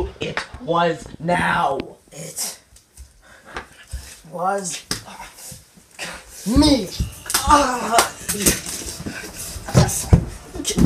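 A teenage boy laughs and shouts up close.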